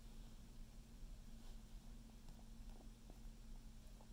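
A puppy chews and gnaws on a plush toy.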